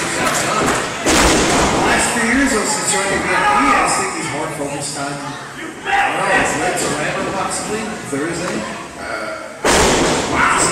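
Bodies slam with heavy thuds onto a wrestling ring mat.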